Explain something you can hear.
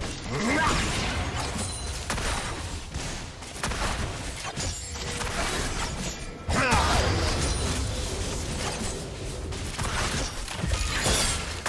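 Magic impacts thud and burst repeatedly.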